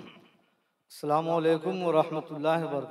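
A man chants loudly through a microphone.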